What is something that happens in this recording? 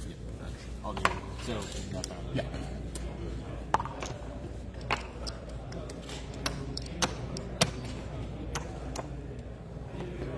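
Game pieces click and tap on a table.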